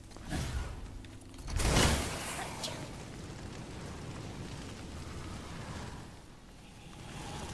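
Heavy footsteps thud on rough ground.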